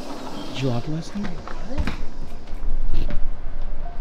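A door slides open.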